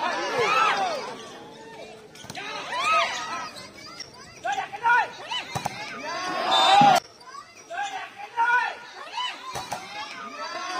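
A crowd of young men and women shouts and cheers outdoors.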